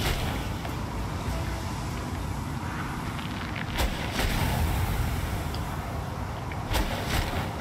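Waves wash gently onto a sandy shore.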